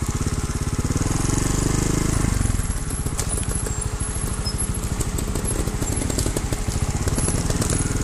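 Dry branches crack and snap under motorcycle tyres.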